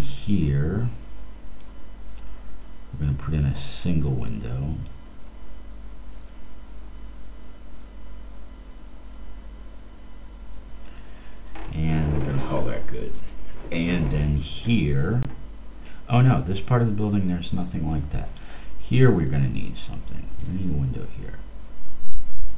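A man talks calmly and close to a headset microphone.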